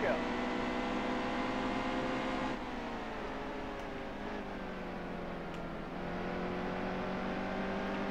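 A racing car engine roars at high speed, easing off in pitch and then holding steady.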